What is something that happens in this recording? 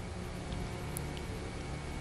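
A cue tip strikes a billiard ball with a sharp click.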